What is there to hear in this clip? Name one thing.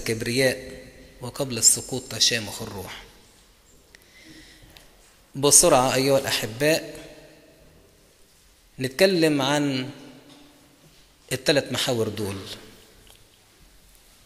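A middle-aged man chants through a microphone in a reverberant hall, in long phrases with pauses.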